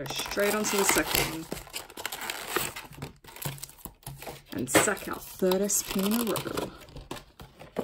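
Plastic wrapping crinkles as it is torn open.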